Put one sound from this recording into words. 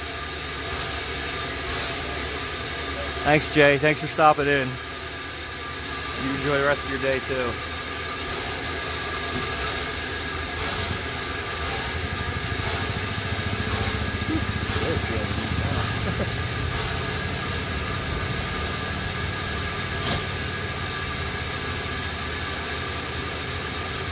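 Steam hisses from a locomotive.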